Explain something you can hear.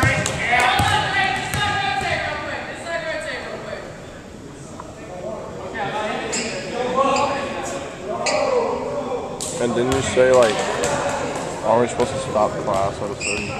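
Men talk and call out casually in a large echoing hall.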